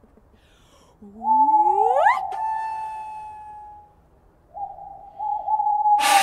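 A man blows a game call in sustained, high whistling notes that glide upward at first.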